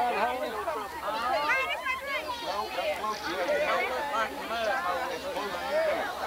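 Girls laugh and call out close by.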